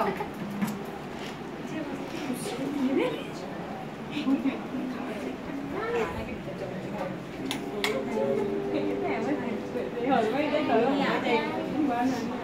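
A crowd of women chatters and talks over one another indoors.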